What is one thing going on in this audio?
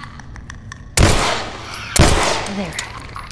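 A pistol fires two loud shots that echo briefly.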